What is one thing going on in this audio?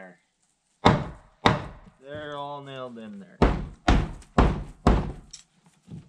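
Heavy footsteps thud on wooden boards nearby.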